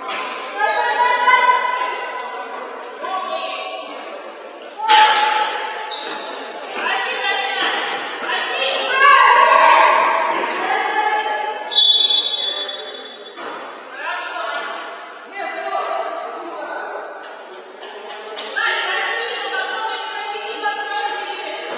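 Young women shout and call out to each other in a large echoing gym.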